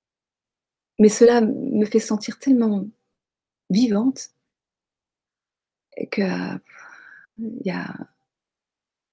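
A middle-aged woman speaks calmly in short phrases, heard through an online call.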